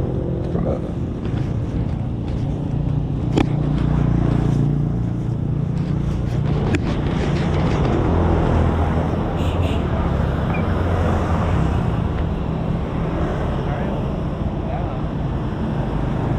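A motorbike engine idles close by with a steady low rumble.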